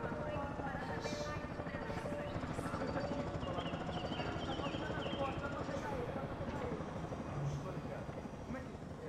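A man speaks in a low, urgent voice.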